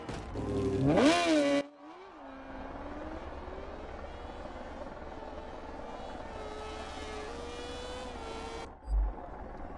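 A motorcycle engine revs loudly and then drones on at speed.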